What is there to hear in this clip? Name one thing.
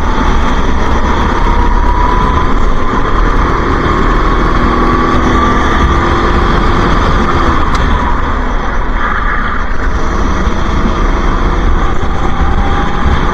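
A kart engine buzzes loudly up close, its pitch rising and falling with the throttle.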